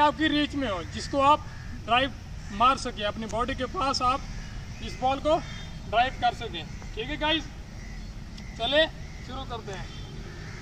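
A young man talks calmly to the listener, close by, outdoors.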